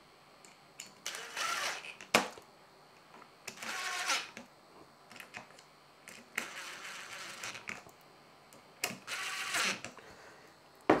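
A cordless drill whirs in short bursts.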